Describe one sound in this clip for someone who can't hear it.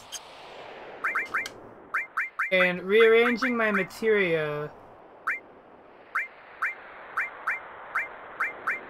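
Short electronic menu beeps sound in a quick, even series.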